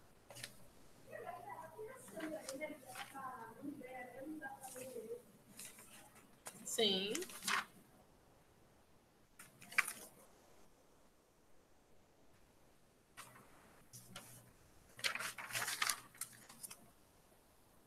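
A woman speaks calmly through a microphone on an online call.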